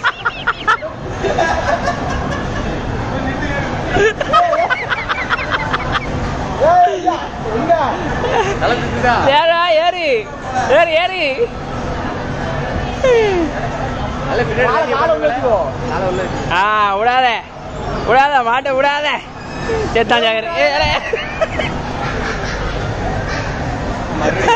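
A crowd chatters steadily in a busy indoor hall.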